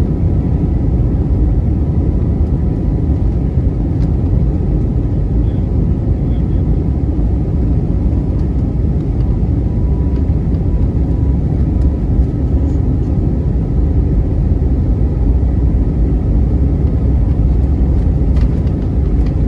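Aircraft wheels rumble over a runway.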